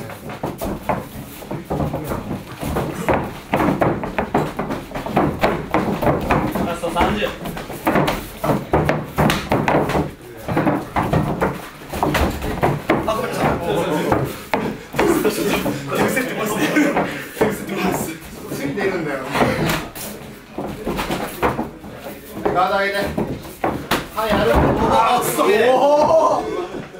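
Feet shuffle and thump on a padded floor.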